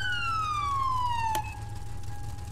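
A police siren wails and winds down.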